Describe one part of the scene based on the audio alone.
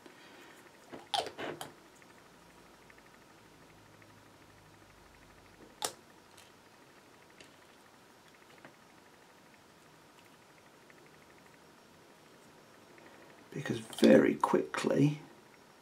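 Small plastic parts click and tap against each other.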